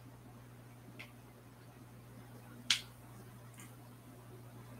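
Fingers tap on a phone.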